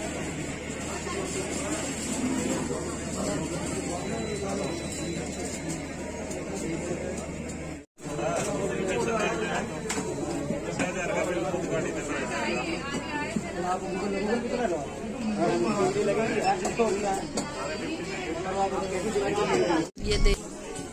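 Many people chatter in a busy, crowded room.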